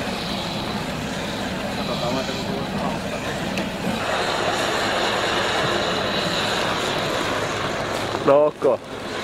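A hair dryer blows with a steady whir.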